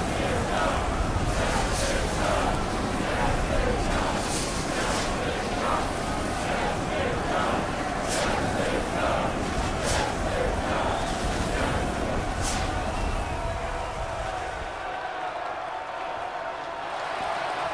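Electric sparks fizz and crackle steadily.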